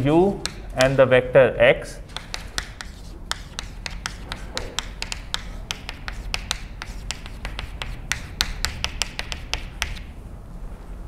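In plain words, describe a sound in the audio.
Chalk taps and scrapes rapidly on a blackboard.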